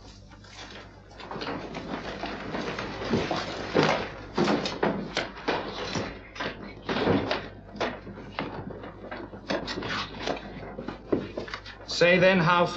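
Footsteps shuffle and scrape as people move about.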